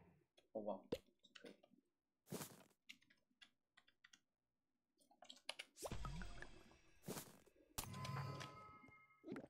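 Short clicks sound as game menu items are picked.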